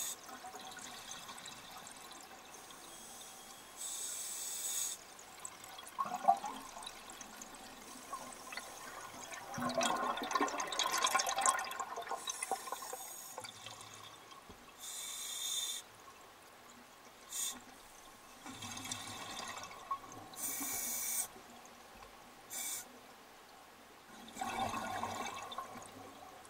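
A scuba diver's exhaled bubbles gurgle and rumble up through the water.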